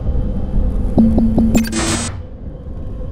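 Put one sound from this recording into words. Keypad buttons beep as they are pressed.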